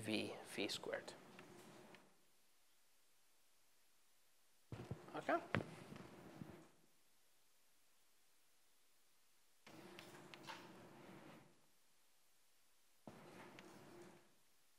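A man lectures calmly through a microphone, in short bursts with pauses.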